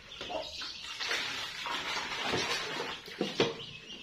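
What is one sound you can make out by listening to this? Thick liquid pours into a metal pot.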